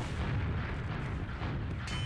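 Gunshots crack nearby in a video game.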